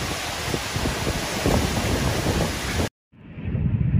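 Strong wind roars outdoors.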